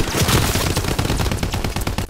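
Water sloshes and splashes around someone wading.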